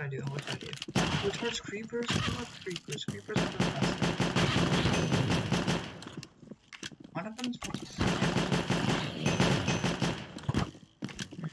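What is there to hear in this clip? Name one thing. Gunshots from a game pistol crack in quick bursts.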